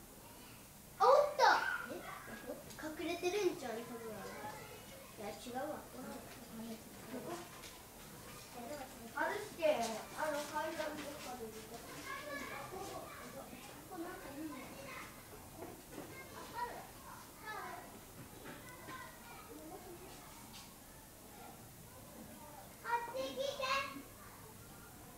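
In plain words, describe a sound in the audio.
A woman talks with animation nearby.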